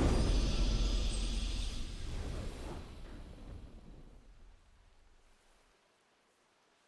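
A triumphant game fanfare plays loudly and fades away.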